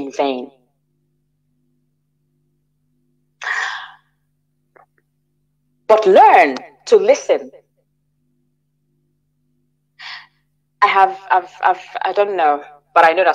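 A woman speaks with animation over an online call, in bursts with pauses.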